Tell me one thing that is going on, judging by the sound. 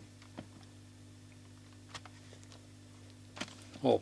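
A small plastic case clicks open.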